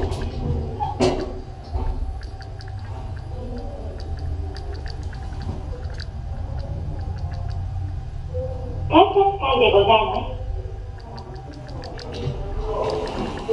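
An elevator hums steadily as it moves.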